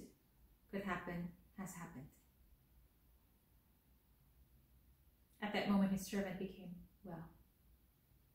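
A young woman speaks calmly and close by, in short phrases with long pauses.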